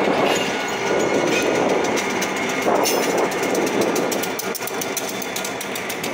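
Locomotive engines roar as the locomotives pass.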